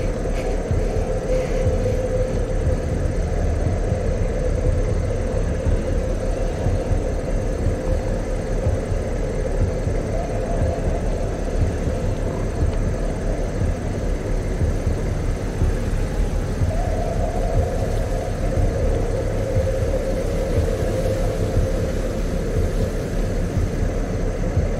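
A man speaks quietly close to a microphone.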